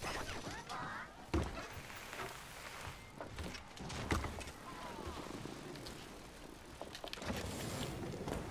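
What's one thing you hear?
Bicycle tyres roll and crunch over dirt and snow.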